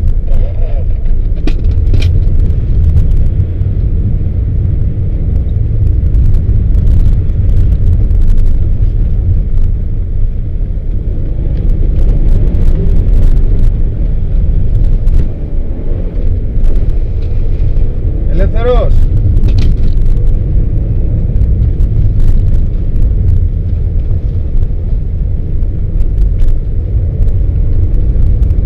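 A car engine rumbles steadily from inside the cabin.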